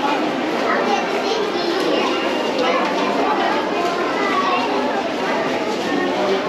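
Footsteps shuffle across a hard floor.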